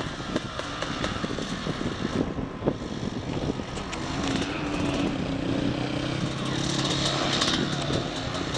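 A dirt bike engine revs and buzzes nearby.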